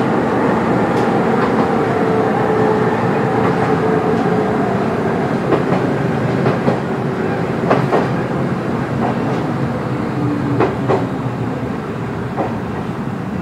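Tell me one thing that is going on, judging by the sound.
Wheels click and clack over rail joints.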